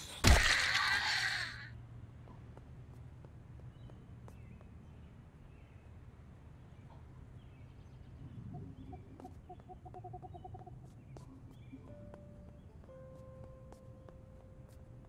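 Footsteps tread softly on the ground.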